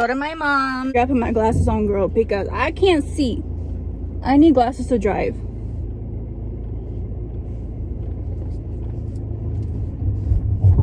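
A car engine starts and hums steadily at idle.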